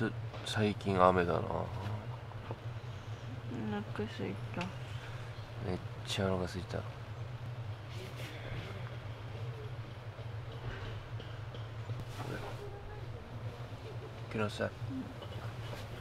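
A young man whispers softly close by.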